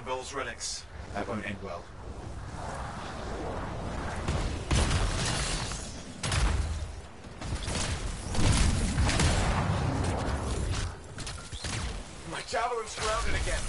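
A young man talks casually into a headset microphone.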